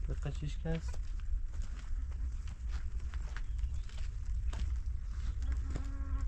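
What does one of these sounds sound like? Footsteps crunch on dry dirt.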